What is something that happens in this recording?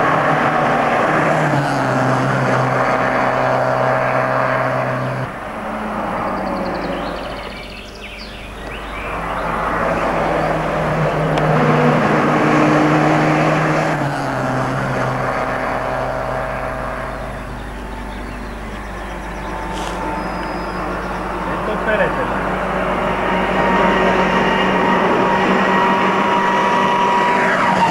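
A rally car engine revs hard and roars past, with clear gear changes.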